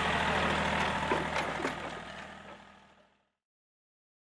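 A tractor engine hums steadily close by and fades out.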